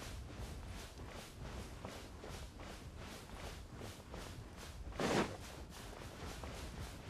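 Quick footsteps crunch through soft sand at a steady running pace.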